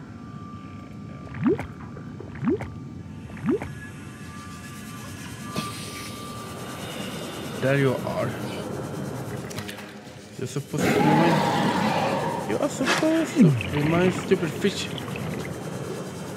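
A small submarine's motor hums steadily as it glides underwater.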